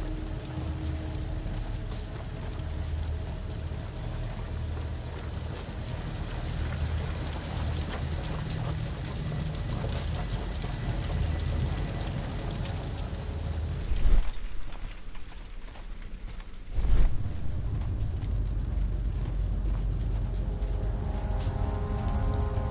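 Footsteps walk slowly over a hard floor.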